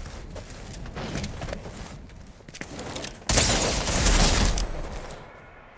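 Footsteps patter quickly over rocky ground.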